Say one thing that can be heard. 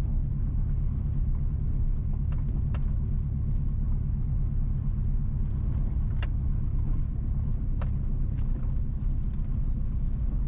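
Tyres roll over a rough road surface.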